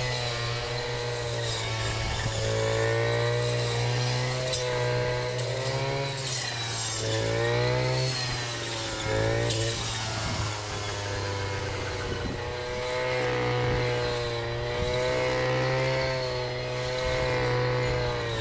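A string trimmer engine whines steadily, rising and falling in pitch as it cuts grass.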